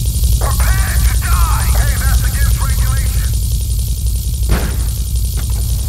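A helicopter's rotor whirs.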